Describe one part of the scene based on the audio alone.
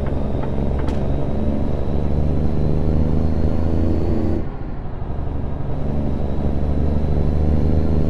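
A truck's diesel engine rumbles steadily.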